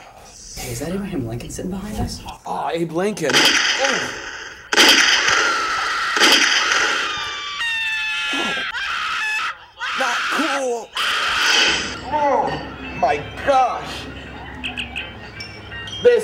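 A young man speaks close by, his voice strained and emotional.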